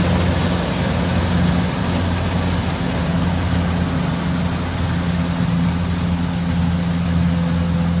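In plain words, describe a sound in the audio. A combine harvester threshes rice with a rushing, rattling noise.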